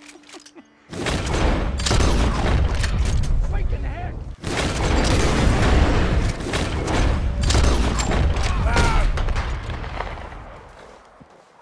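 Rifle shots ring out loudly, one after another.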